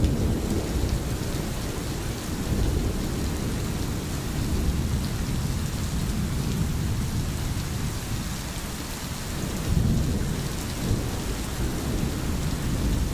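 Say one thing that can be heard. Rain falls steadily on trees and water.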